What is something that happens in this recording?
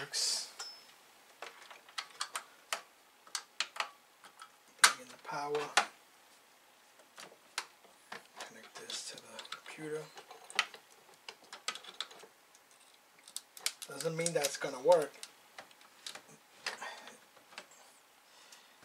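Small metal parts click and clatter under handling fingers.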